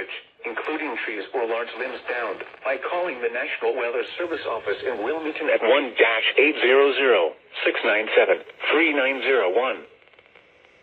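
A radio plays loudly through its small loudspeaker.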